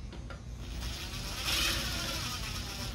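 A cordless power tool whirs briefly.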